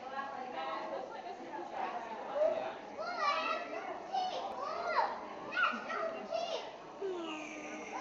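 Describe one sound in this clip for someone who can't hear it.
A young child talks excitedly nearby.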